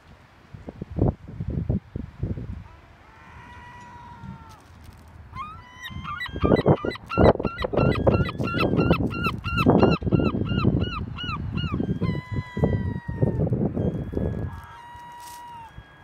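Wind blows in gusts across an open shore.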